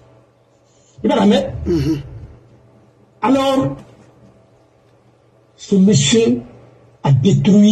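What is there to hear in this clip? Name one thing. An elderly man speaks slowly and emphatically, close to a microphone, with pauses between phrases.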